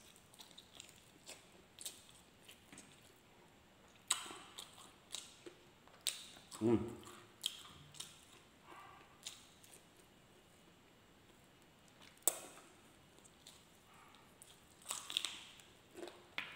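Crispy fried chicken crunches as a man bites into it.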